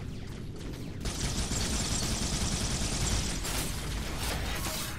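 Energy weapons fire and an explosion bursts in a video game.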